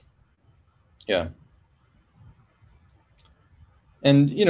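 A man speaks calmly and haltingly through a computer microphone, in short bursts.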